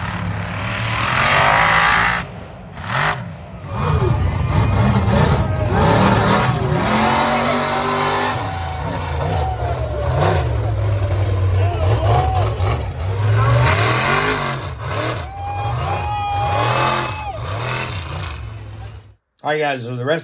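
Big truck engines roar loudly and rev up and down, outdoors.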